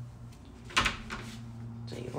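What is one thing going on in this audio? A cat paws and bumps against a wooden cabinet door.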